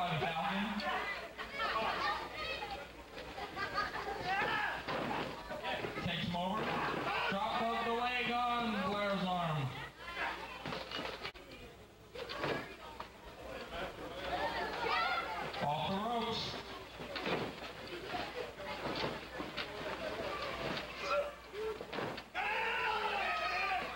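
A crowd of spectators shouts and cheers in an indoor hall.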